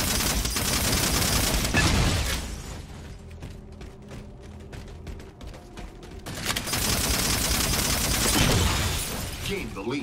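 A futuristic gun fires rapid bursts of sharp, crackling shots.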